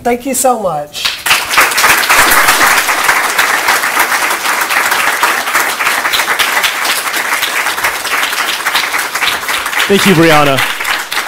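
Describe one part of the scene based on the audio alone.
An audience claps and laughs.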